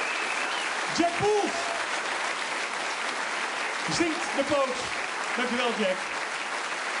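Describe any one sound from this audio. A man speaks with animation into a microphone over the applause.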